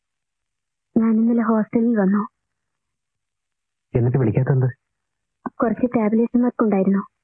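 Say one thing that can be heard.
A woman speaks quietly, close by.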